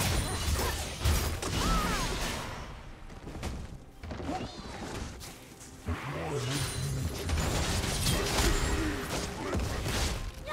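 Game spells and attacks crackle and burst in quick succession.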